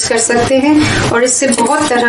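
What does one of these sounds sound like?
A spoon scrapes against a metal bowl.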